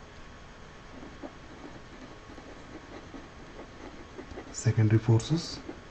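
A pen scratches softly on paper as someone writes.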